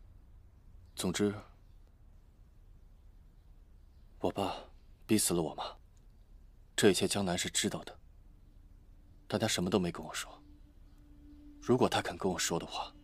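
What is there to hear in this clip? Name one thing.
A young man speaks in a low, subdued voice, close by.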